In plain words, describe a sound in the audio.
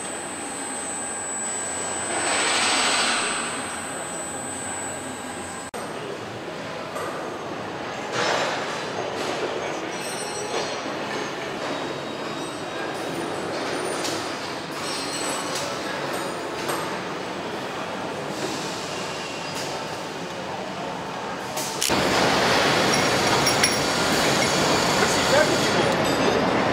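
Factory machinery hums and clatters in a large echoing hall.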